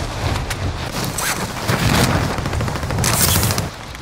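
Gunfire cracks in short bursts.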